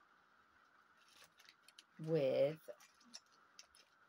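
Paper rustles and crinkles in a woman's hands.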